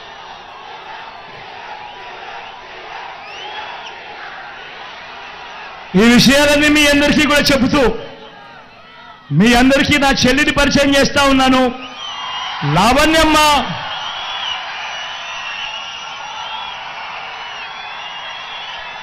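A large crowd cheers and murmurs outdoors.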